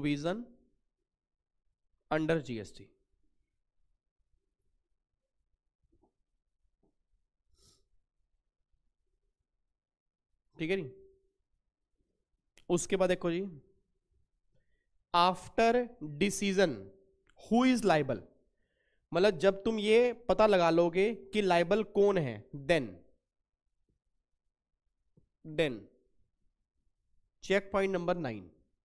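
A man lectures calmly into a microphone, with pauses.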